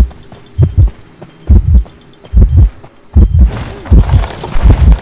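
Heavy footsteps thud in a steady running rhythm.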